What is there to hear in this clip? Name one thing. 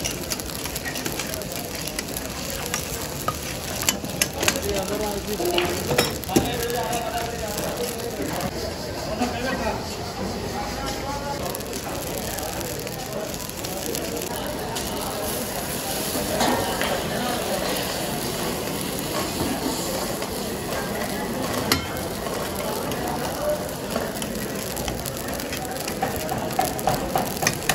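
Metal tongs and a ladle scrape and clink against a wok.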